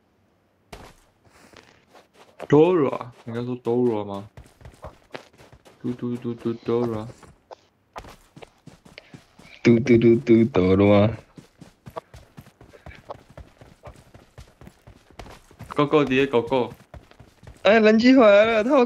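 Footsteps run quickly over ground.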